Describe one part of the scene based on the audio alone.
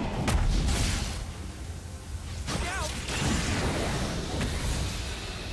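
Weapons strike in quick hits.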